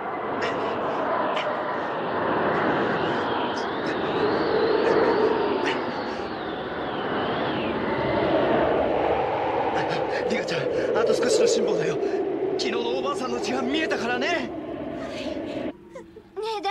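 A strong blizzard wind howls and roars.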